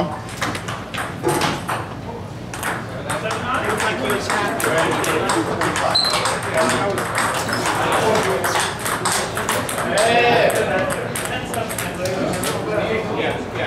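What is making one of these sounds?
Men chatter in the background of an echoing hall.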